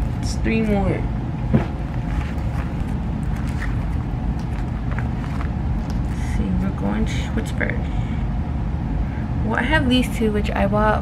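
Plastic binder sleeves rustle and crinkle as pages turn.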